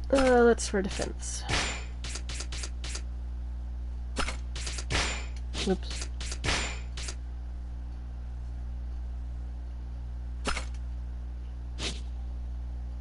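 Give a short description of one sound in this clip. Short electronic menu blips and clicks sound in quick bursts.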